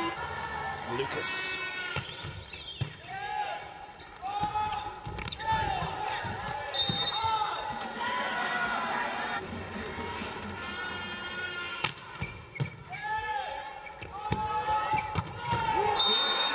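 A volleyball is struck hard with sharp slaps.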